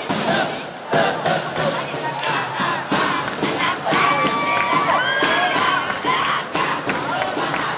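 Music with drums plays loudly over a loudspeaker outdoors.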